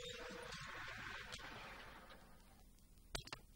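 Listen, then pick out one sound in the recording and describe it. A car engine hums as the car drives along, then fades.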